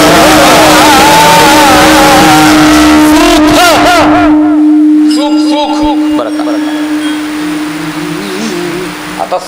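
A young man sings loudly through a microphone and loudspeaker.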